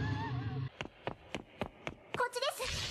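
A young man giggles quietly.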